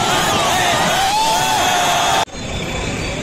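A large crowd cheers and sings loudly in a stadium.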